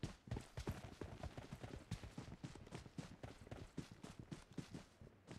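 Quick footsteps thud steadily on grass.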